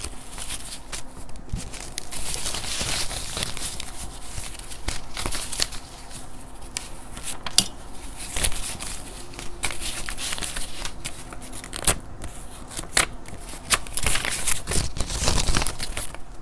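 Paper banknotes rustle and flick crisply as they are counted by hand, close up.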